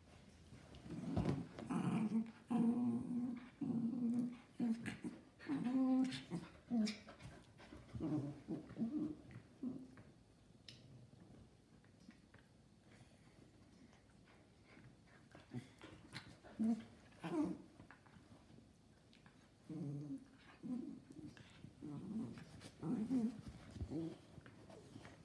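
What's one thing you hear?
A small dog grumbles and whines in bursts, close by.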